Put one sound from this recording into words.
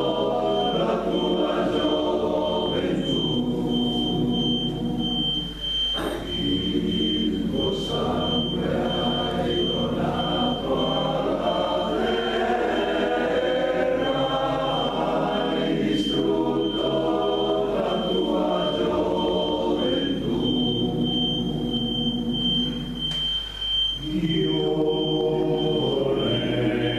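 A choir of older men sings together in harmony in an echoing hall.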